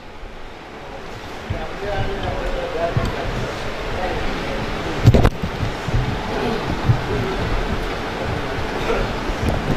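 A microphone thumps and rattles as it is adjusted on its stand.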